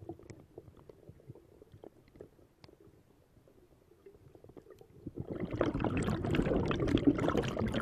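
Exhaled air bubbles from a scuba regulator burble and rumble underwater.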